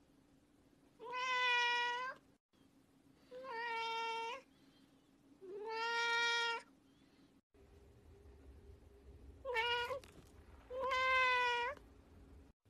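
A cat meows loudly and insistently, close by.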